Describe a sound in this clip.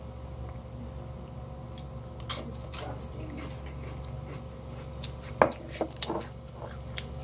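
A glass jar clinks and taps as it is handled.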